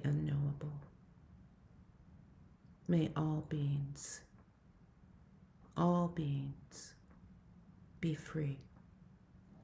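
An older woman speaks calmly in short phrases over an online call.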